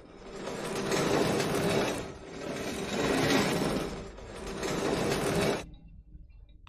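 A plastic crate scrapes as it is pushed across a floor.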